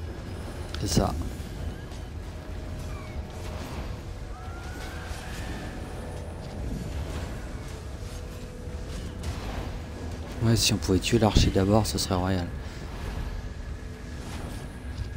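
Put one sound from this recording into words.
Game combat effects whoosh and clash.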